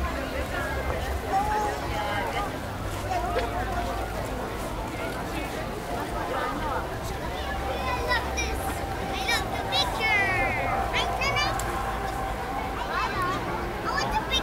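A crowd of adults and children chatters nearby outdoors.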